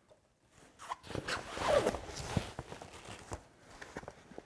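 Fabric rustles as hands shift it.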